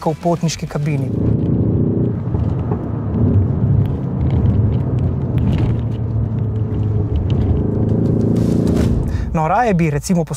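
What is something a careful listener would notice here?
A car engine hums steadily with road noise while driving.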